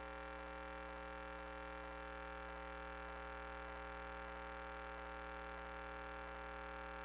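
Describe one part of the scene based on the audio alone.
A small motor whirs steadily.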